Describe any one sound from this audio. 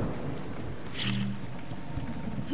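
An electric charge crackles and buzzes in a short burst.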